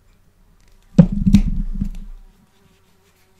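Pliers press a metal snap shut with a sharp click.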